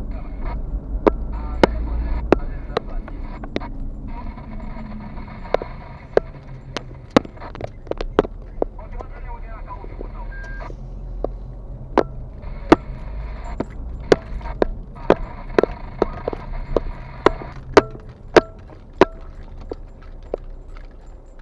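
Tyres roll over a bumpy road surface with sharp knocks and rattles.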